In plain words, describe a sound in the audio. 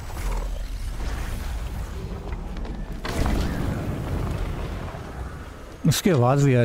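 A low rumble swells as a glowing gateway opens.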